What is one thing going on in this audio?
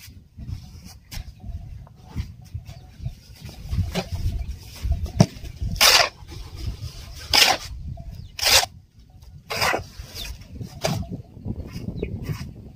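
A shovel scrapes and digs into loose dry powder.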